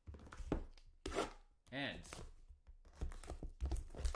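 A knife slits plastic wrap.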